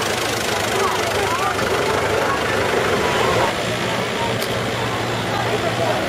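A tractor engine idles.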